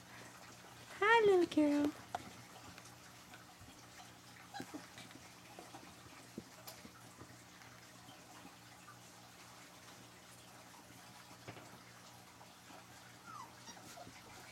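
A puppy whines in short high cries close by.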